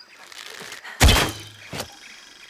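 An arrow is loosed with a sharp twang and whoosh.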